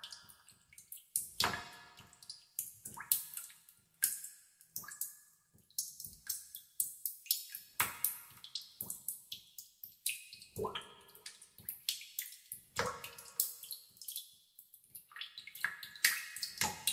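Water drops plink and splash into still water, one after another.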